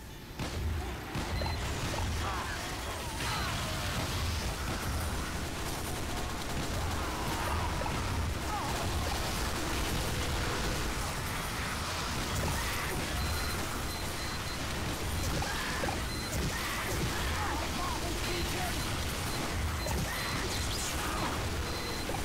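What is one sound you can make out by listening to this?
Flames roar from a flamethrower.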